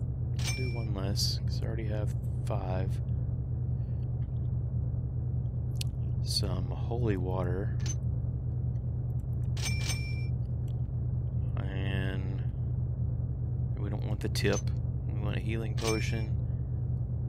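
A game menu makes short clicking chimes as items are picked.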